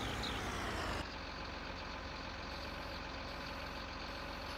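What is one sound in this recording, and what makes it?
A heavy engine hums steadily, heard from inside the cab.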